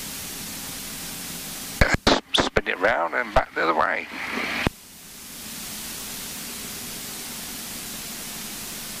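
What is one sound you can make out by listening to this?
A small plane's engine drones steadily as the plane rolls along a runway.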